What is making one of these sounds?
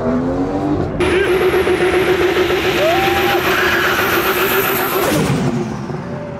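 Tyres squeal in a smoky burnout.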